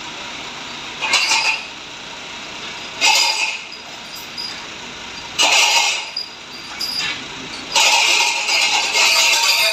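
Heavy metal chains clank and rattle in short bursts.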